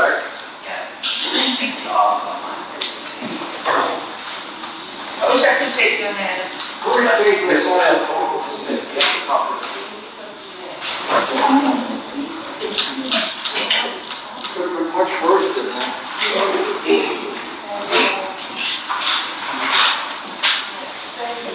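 Several adults talk quietly nearby in an echoing room.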